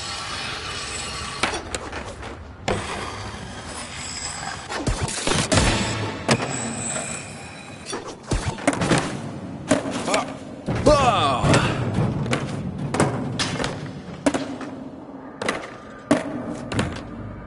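Skateboard wheels roll and clatter over ramps and rails.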